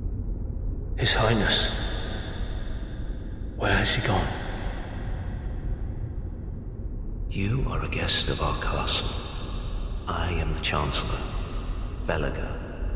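Footsteps with armour clinking move across a stone floor in a large echoing hall.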